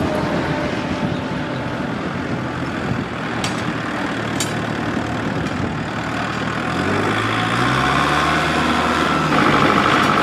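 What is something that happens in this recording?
A tractor engine rumbles as the tractor drives by.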